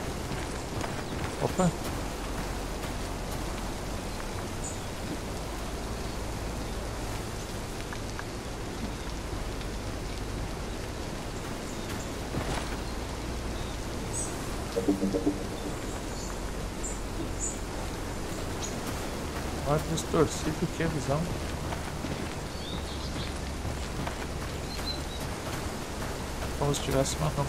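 Footsteps crunch through grass and gravel outdoors.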